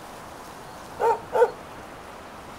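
A dog barks twice.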